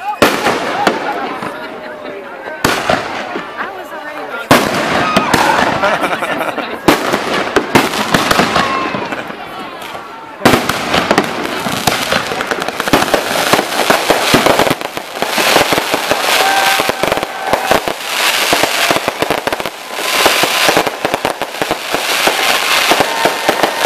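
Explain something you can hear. Fireworks bang and burst overhead.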